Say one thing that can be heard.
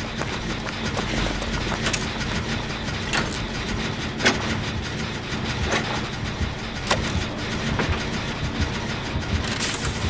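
Metal parts clank and rattle on a machine being worked on.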